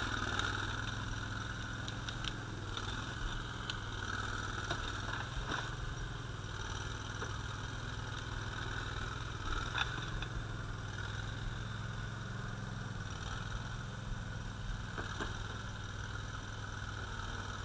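Logs scrape and drag across the ground.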